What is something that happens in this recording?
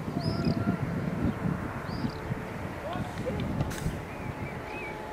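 Teenage boys shout to each other far off across an open outdoor pitch.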